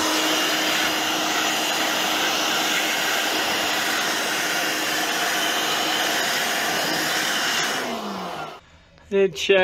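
Compressed air hisses loudly in a sharp, steady blast.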